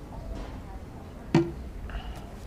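A cup knocks lightly as it is set down on a desk.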